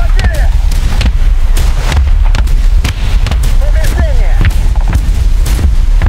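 A shell explodes with a heavy boom.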